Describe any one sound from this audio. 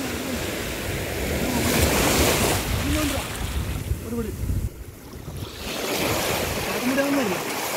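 Waves wash and break on a shore, outdoors in wind.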